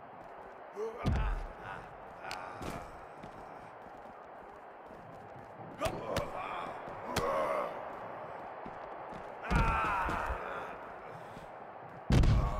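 Heavy blows and bodies thud hard against the ground.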